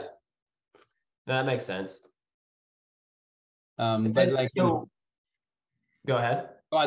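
A man speaks calmly through an online call, in short phrases.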